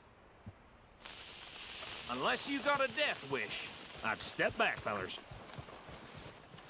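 A lit fuse hisses and sputters.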